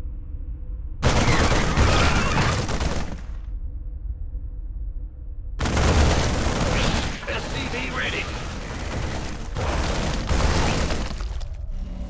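Rapid gunfire rattles in long, loud bursts.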